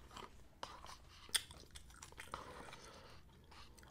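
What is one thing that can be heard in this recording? Chopsticks click against a paper cup close to a microphone.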